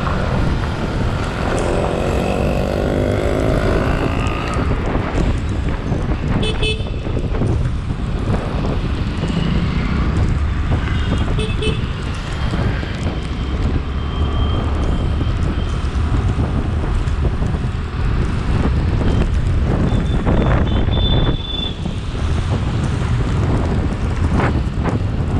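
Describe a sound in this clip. Wind rumbles against the microphone of a moving motorcycle.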